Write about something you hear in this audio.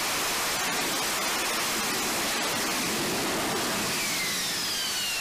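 A jet engine roars loudly and steadily.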